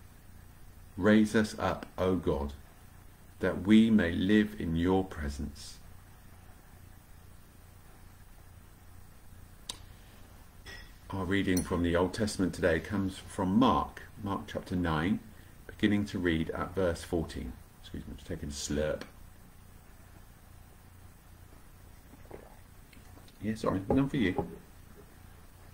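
A middle-aged man speaks calmly and close to the microphone, with pauses.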